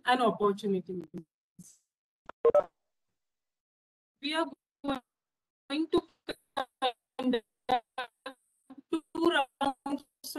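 A young woman speaks calmly through an online call.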